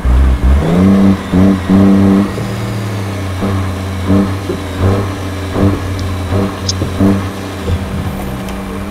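A truck's diesel engine rumbles and revs while climbing.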